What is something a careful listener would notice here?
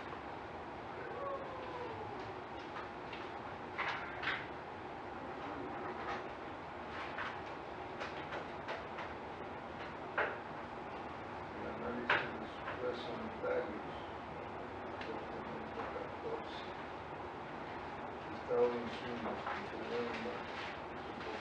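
A man speaks calmly at a distance in a room with some echo.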